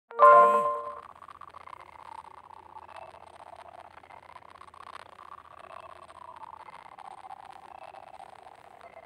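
Upbeat game music plays with chimes and jingles.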